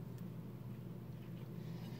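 A man gulps from a bottle.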